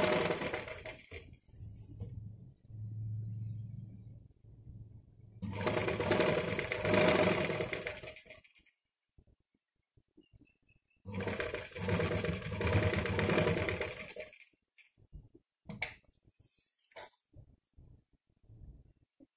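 Cloth rustles as hands smooth it.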